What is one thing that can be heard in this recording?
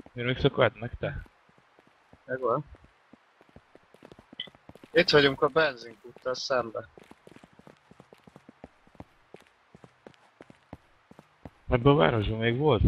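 Footsteps crunch steadily on pavement.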